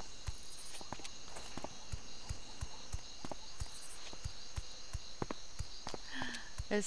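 Footsteps thud quickly and steadily on stone.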